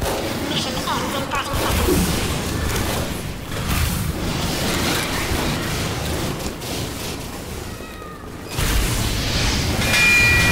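Explosions boom and crackle in quick bursts.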